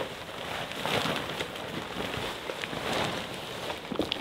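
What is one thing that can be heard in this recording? Tent fabric rustles and flaps as it is handled.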